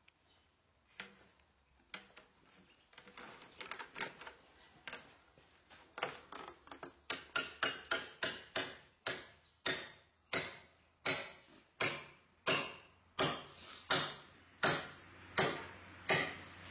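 A wooden mallet knocks on a timber beam in steady, repeated blows.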